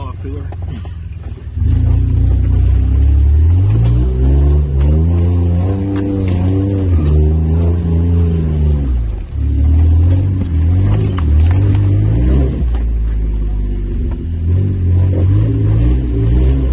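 Tyres crunch and bump over rocks.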